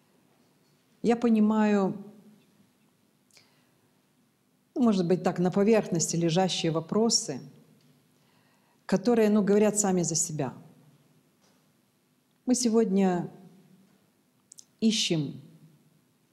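A middle-aged woman speaks calmly and close to a microphone, in short bursts with pauses.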